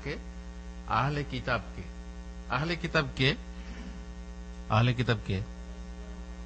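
A man speaks emphatically into a microphone, in short bursts with pauses.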